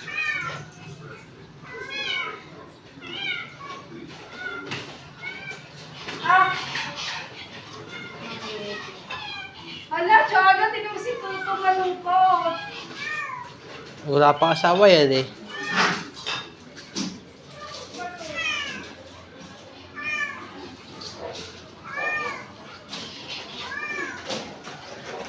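A dog whines and yelps in high, repeated cries close by.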